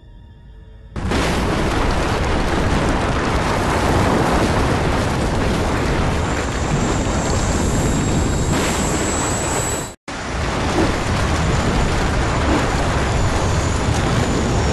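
A loud rumbling roar of crumbling rock builds and continues.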